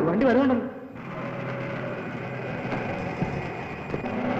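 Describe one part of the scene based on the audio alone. A vehicle engine rumbles.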